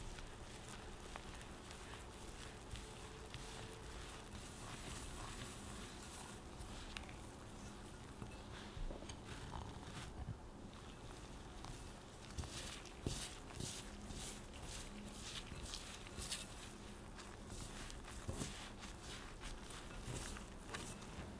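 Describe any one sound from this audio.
Gloved hands rub and crumble a dry, gritty mixture in a glass bowl.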